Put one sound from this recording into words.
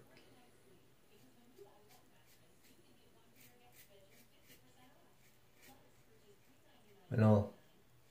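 A razor scrapes across stubble.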